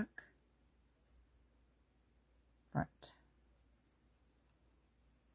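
A crochet hook softly rustles and clicks through yarn.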